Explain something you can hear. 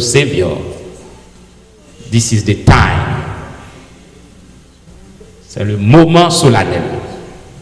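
A man preaches with animation through a microphone in a reverberant hall, in loud bursts with pauses.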